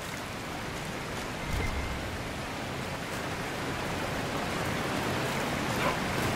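A waterfall roars close by, growing louder.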